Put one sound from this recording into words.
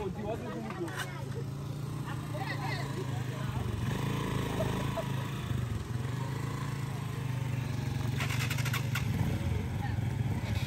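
A young woman talks and laughs close by, outdoors.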